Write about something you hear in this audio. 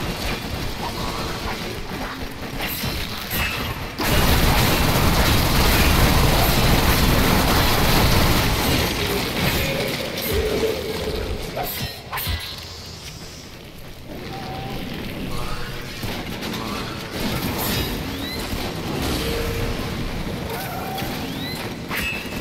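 A sword swishes and clangs as it slashes.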